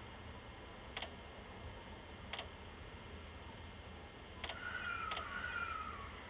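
A train's wheels click on the rails.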